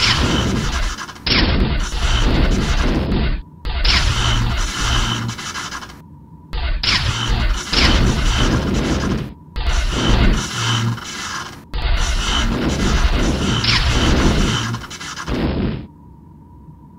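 Loud explosions boom and roar in a game.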